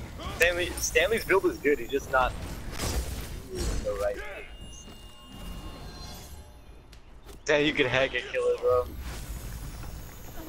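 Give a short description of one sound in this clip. Magical attacks whoosh and crackle in a fight.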